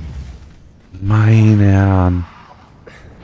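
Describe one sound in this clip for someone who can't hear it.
A beast lets out a loud, drawn-out roar.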